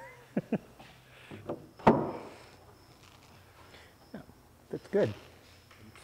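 Wood knocks and taps against wood.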